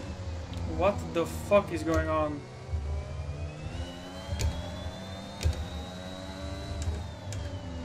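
A racing car engine whines steadily and climbs in pitch as the car speeds up.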